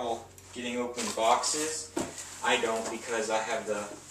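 Cardboard flaps rustle and creak as a box is opened.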